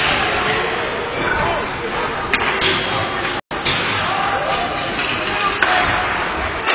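Ice hockey skates scrape and carve across ice in an echoing rink.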